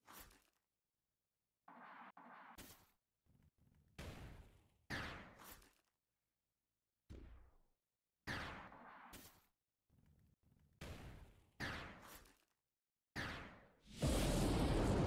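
Magic spell effects whoosh and crackle in short bursts.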